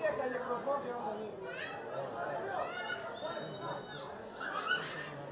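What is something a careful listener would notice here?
Spectators talk and call out nearby.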